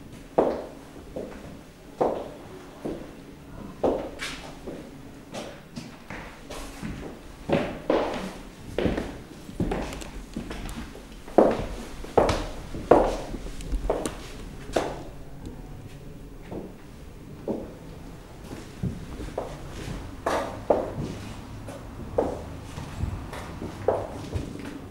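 Footsteps knock on a hard floor in a room with some echo.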